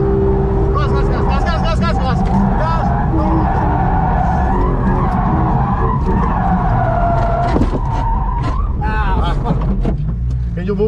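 A car engine roars at high speed, then winds down as the car slows.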